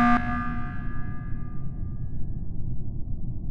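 A loud alarm blares briefly and fades.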